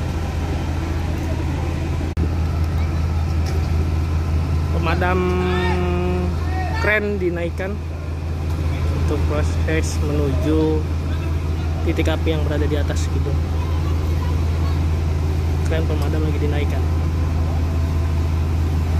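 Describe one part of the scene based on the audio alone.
A fire truck's pump engine hums steadily close by.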